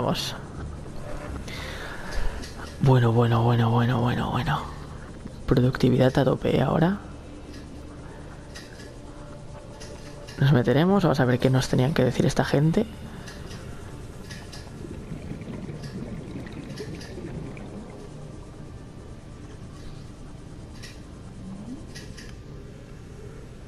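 A small underwater vehicle's motor hums steadily.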